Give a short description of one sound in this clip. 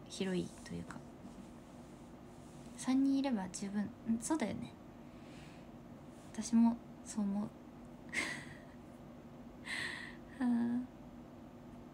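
A young woman speaks softly and casually, close to the microphone.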